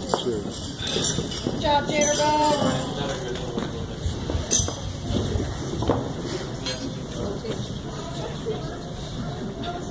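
A crowd of guests chatters in the background.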